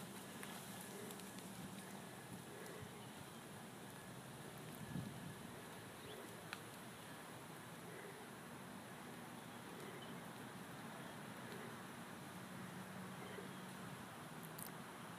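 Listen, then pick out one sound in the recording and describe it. A horse's hooves thud softly on sand, fading as it moves away.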